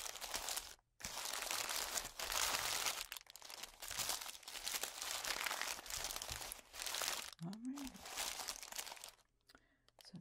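Plastic candy wrappers crinkle and rustle loudly as hands rummage through a pile.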